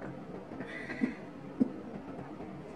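A glass is set down on a wooden table with a knock.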